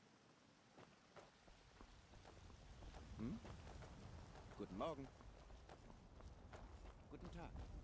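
Footsteps crunch on a stone path.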